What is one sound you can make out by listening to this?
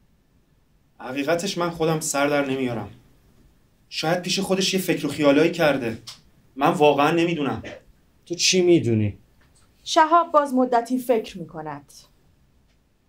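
A man speaks clearly and expressively in a quiet room.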